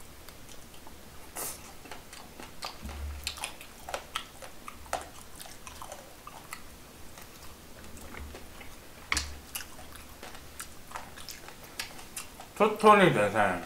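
A young man chews and slurps food noisily close to a microphone.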